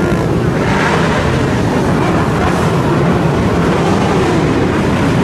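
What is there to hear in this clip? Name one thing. A large group of motorcycle engines rumbles and roars loudly along a street below.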